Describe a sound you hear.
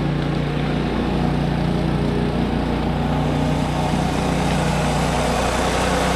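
An electric lawnmower motor whirs steadily as it cuts grass, growing closer.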